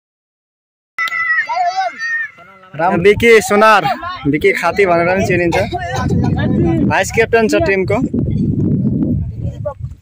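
Boys talk and call out loudly close by, outdoors.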